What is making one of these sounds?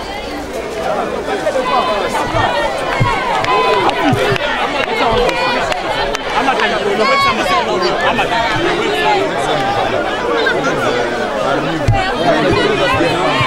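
A dense crowd of men talks and shouts excitedly all around, close by.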